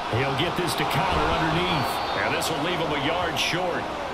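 Football players collide hard in a tackle.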